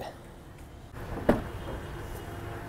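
A vehicle door clicks open.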